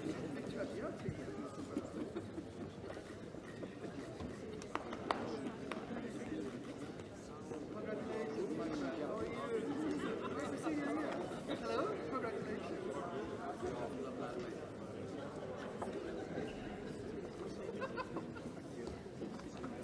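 A large crowd of men and women chatters all around in a big echoing hall.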